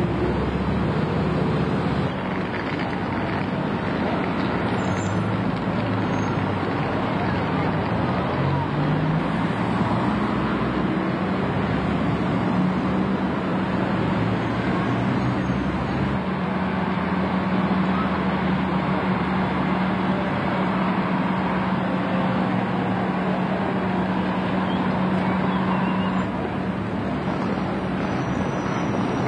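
A bus engine rumbles and hums as it drives past.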